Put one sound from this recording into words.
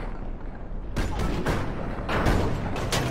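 A gunshot cracks at close range.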